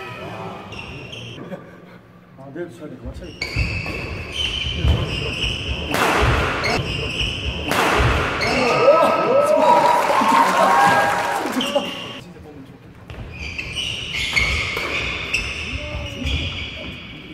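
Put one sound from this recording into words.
Sneakers squeak on a hard indoor court.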